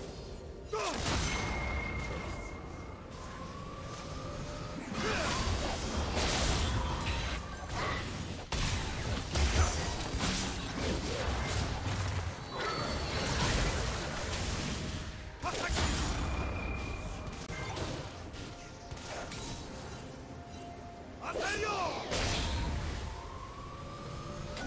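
Game spell effects whoosh and burst in quick succession.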